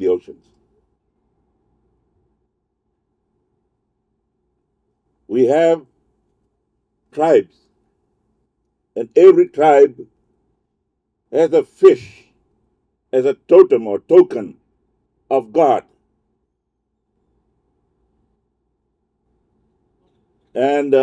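An elderly man speaks slowly into a microphone, in short phrases with long pauses.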